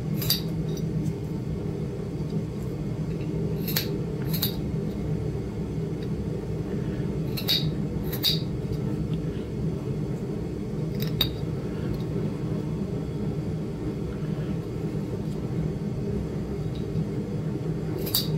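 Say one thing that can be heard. A metal tool tip clicks and scrapes sharply on rock.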